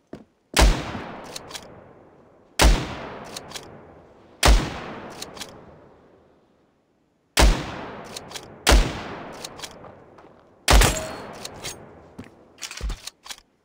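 A rifle bolt clicks as it is worked.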